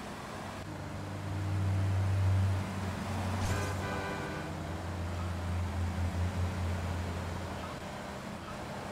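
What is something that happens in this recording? Other cars pass close by with a rush of engines.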